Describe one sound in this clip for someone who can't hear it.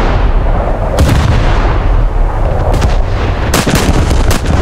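Shells explode against a ship.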